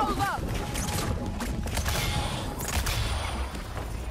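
A magical blast bursts with a crackling whoosh.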